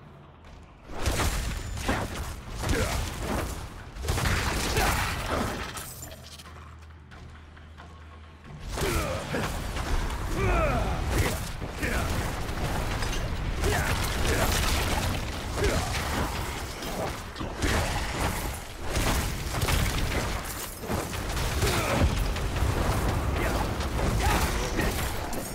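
Fiery blasts roar and crackle in quick bursts.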